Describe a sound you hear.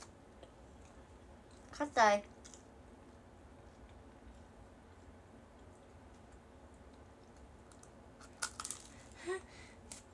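A young woman chews and munches food close by.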